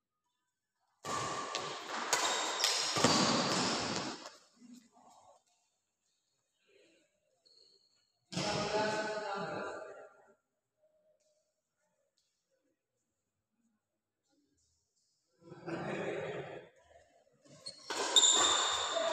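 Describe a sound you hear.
Badminton rackets strike a shuttlecock in a rally, echoing in a large hall.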